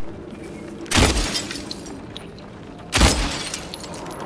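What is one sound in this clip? A pistol fires two loud shots that ring out in a hard, echoing room.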